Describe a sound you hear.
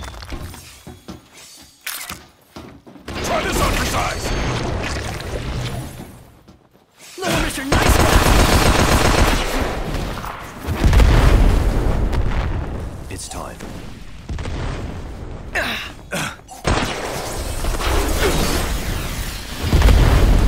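Blades clash and ring in quick, repeated strikes.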